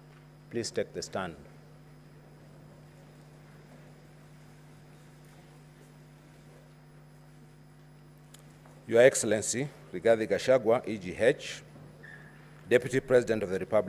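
A man speaks formally into a microphone.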